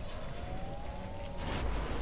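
A blade swooshes through the air.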